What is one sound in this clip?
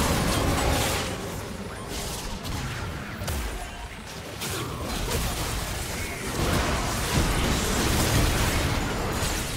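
Game impacts thud and clash repeatedly.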